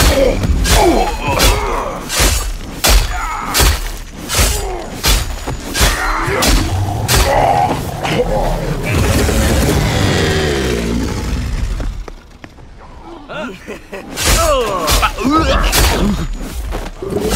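A blade slashes and strikes in quick, heavy blows.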